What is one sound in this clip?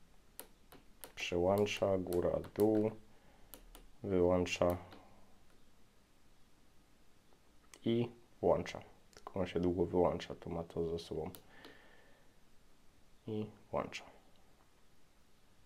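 Small buttons click softly as a finger presses them.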